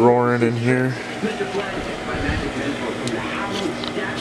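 A wood fire crackles softly in a stove.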